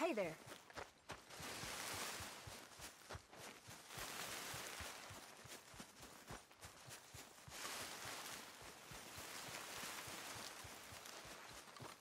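Leaves and bushes rustle as someone pushes through them.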